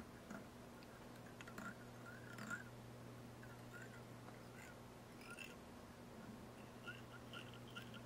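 Small metal tools click faintly in the hands.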